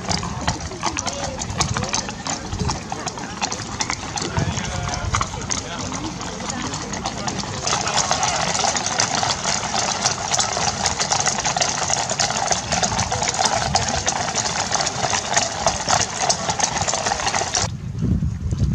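Horses' hooves clop on pavement.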